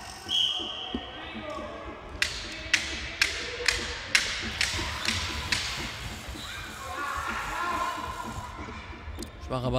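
Shoes squeak on a hall floor.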